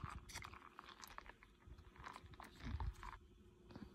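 A plastic cup slides and bumps on soft bedding.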